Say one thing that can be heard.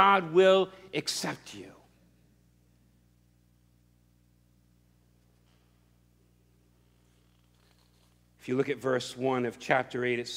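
A middle-aged man speaks with animation through a microphone, pausing between phrases.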